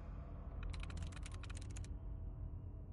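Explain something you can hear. An old computer terminal chatters with a rapid burst of clicks.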